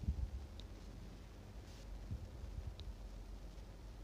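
Thick liquid pours softly into a glass.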